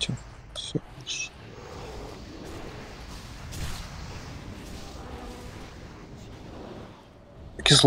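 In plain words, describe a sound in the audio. Magic spells whoosh and crackle in a battle.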